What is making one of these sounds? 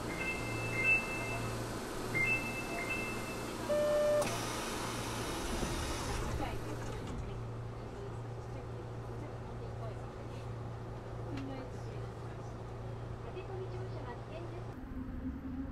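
A train hums steadily while it rolls along.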